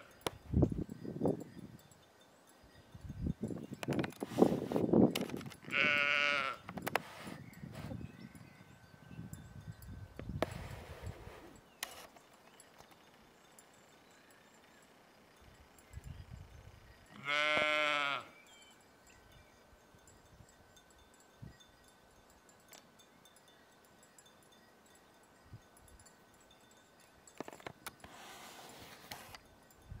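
Sheep tear and munch grass.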